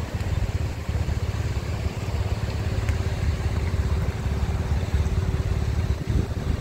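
Motorcycle engines idle nearby.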